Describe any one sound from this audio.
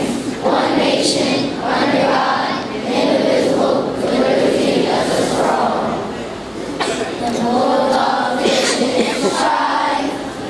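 A woman speaks along aloud, close by.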